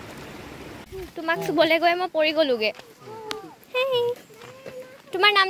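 A young girl talks and giggles close by.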